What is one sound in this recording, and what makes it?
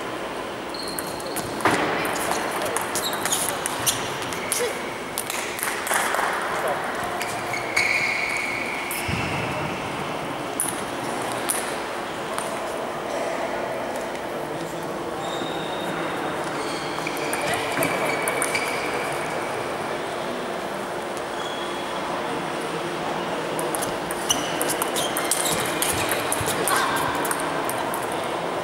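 A ping-pong ball clicks back and forth between paddles and the table in a large echoing hall.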